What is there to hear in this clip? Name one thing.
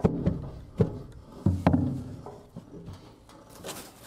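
Gloved hands rustle and scrape through dry litter.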